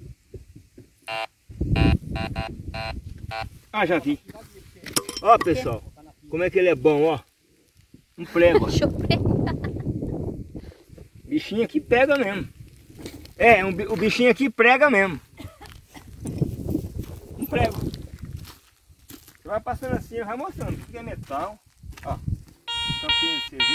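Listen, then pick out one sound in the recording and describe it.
A metal detector beeps.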